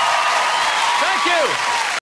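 People in a crowd whistle.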